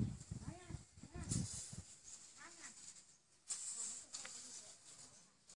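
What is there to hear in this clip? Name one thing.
A rake scrapes across grain spread on the ground.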